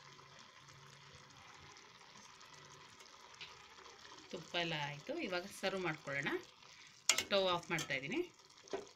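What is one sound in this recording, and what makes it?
A ladle stirs thick, wet food in a metal pot.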